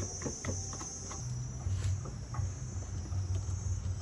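Eggshells crack and clink in a metal pot.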